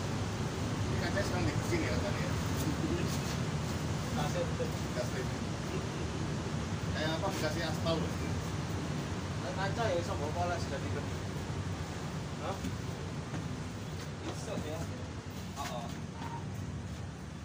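A man talks nearby in a calm, conversational voice.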